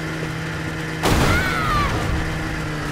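A snowmobile lands with a loud crash.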